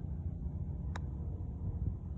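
A putter taps a golf ball on the green, faint in the distance.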